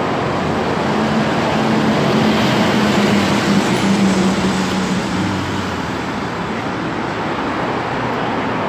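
A bus engine rumbles loudly as a bus drives by.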